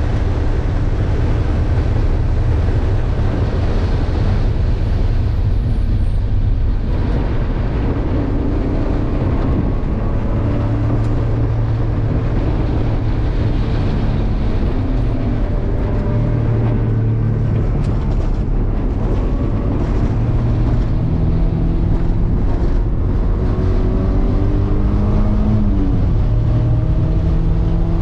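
Wind rushes loudly past the car.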